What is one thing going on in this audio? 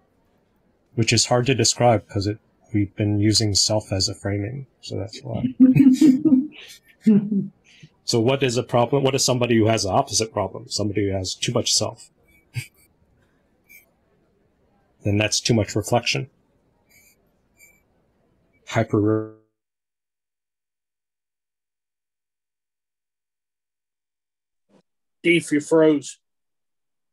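A man speaks with animation through a headset microphone on an online call.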